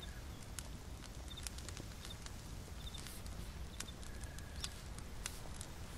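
A small fire crackles and pops softly.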